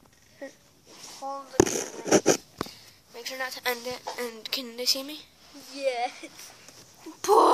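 A young girl talks quietly close by.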